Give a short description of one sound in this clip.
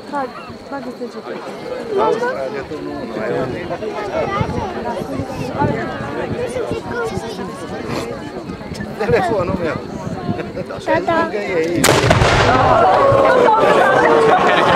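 A crowd of men and women chatters outdoors nearby.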